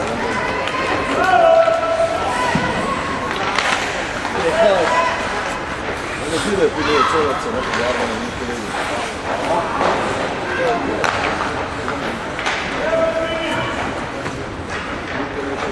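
Hockey sticks clack against a puck and each other.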